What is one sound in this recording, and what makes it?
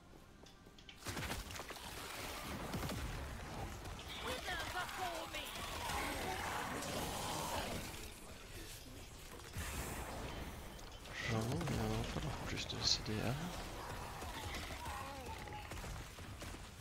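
Game spells crackle and burst during combat.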